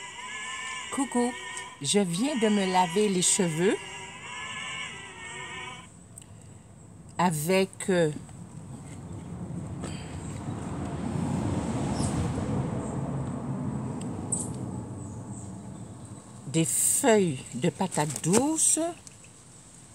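A woman speaks close by, calmly, in short bursts.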